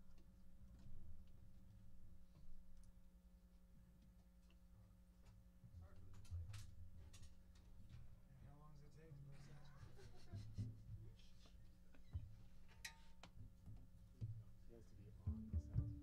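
A piano plays jazz chords.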